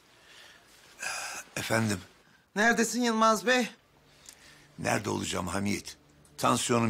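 An elderly man speaks into a phone with animation.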